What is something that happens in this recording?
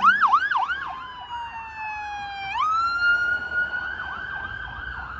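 A police siren wails, dropping and rising in pitch.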